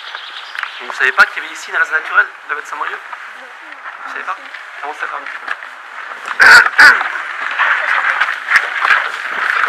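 A young man speaks calmly to a group outdoors.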